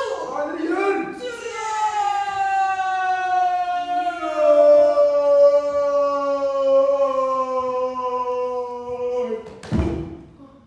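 A young woman holds a long, loud, wavering cry.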